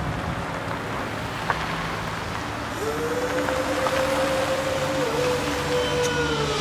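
A car engine hums as the car drives slowly past.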